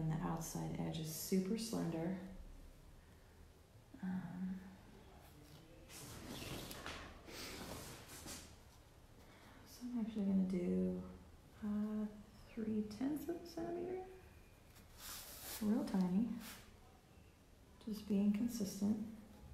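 A pencil scratches along paper in short strokes.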